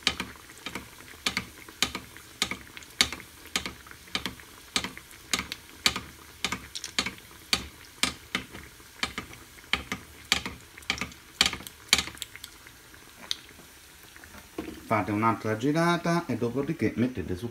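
Hot oil sizzles and crackles in a frying pan.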